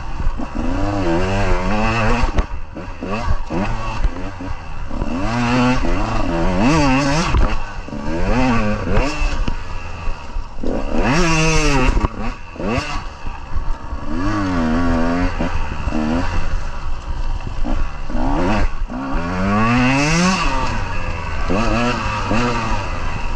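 A dirt bike engine revs up and down, loud and close.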